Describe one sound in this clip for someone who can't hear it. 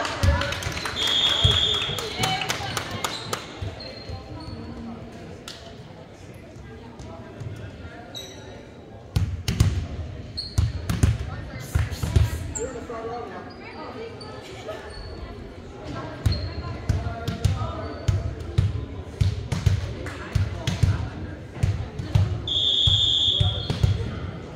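A whistle blows shrilly in a large echoing gym.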